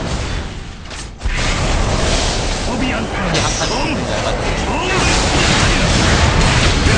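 Spell effects crackle and blast in a busy game fight.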